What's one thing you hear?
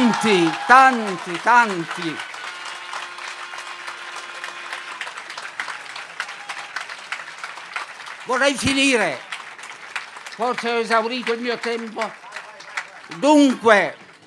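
A crowd claps and cheers outdoors.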